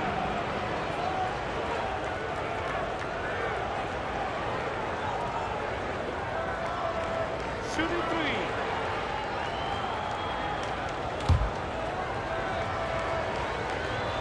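A large arena crowd murmurs and cheers steadily.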